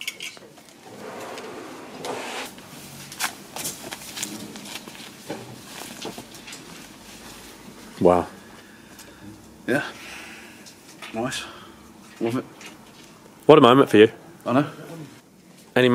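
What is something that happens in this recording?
Fabric rustles as a man pulls a shirt on and off.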